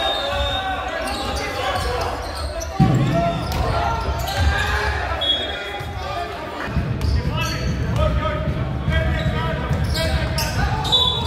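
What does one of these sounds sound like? Players shout to each other in a large echoing gym.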